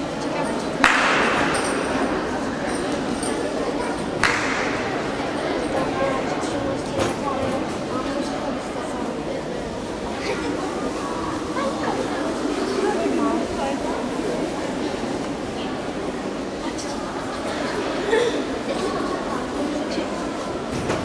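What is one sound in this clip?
Children's voices murmur faintly in a large echoing hall.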